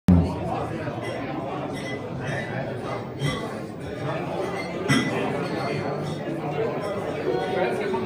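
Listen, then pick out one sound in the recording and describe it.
Electric guitars play loudly through amplifiers.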